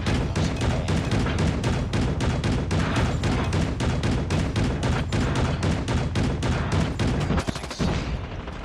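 A heavy gun fires rapidly and steadily.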